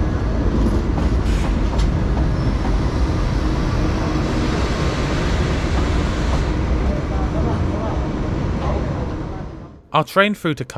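A train rolls slowly past with a low, steady rumble.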